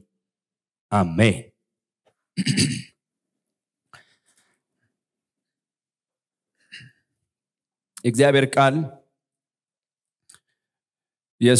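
A man speaks slowly through a microphone in short bursts with long pauses.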